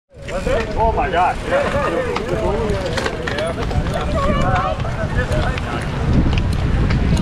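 Bicycle tyres roll over pavement.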